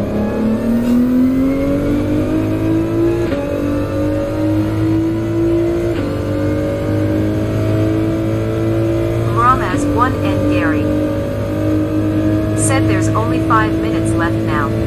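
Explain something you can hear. A racing car engine roars and climbs in pitch as it accelerates.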